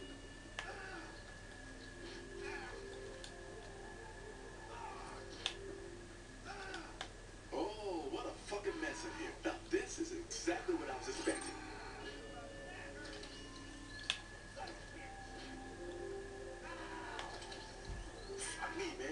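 Video game sound plays from a television's speakers.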